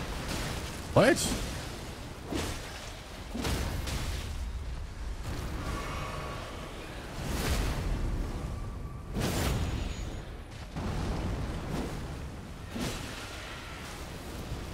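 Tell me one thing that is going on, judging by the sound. Sword blows clash and swoosh in a game fight.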